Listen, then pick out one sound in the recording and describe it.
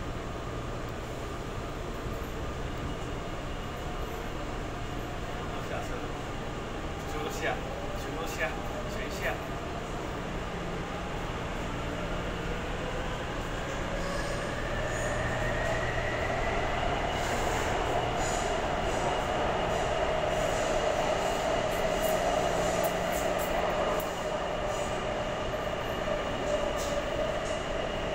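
A subway train rumbles steadily along the track.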